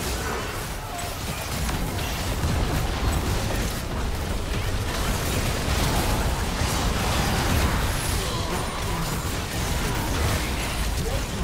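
Spell blasts and weapon hits crackle and boom in a video game battle.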